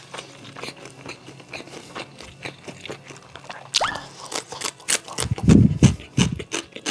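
A young man chews food noisily and close up.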